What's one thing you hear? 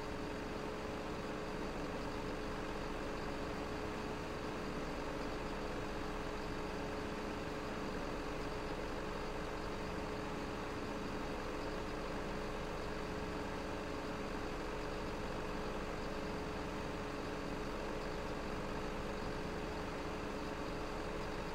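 Hydraulics whine as a crane arm moves.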